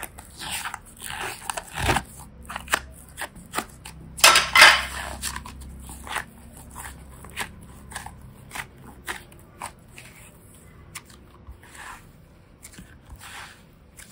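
Soft slime squishes and squelches as hands knead it, with sharp sticky pops and clicks.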